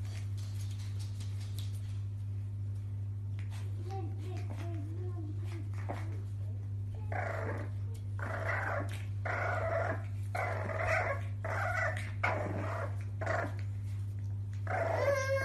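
Puppy claws tap and scrape on a hard floor.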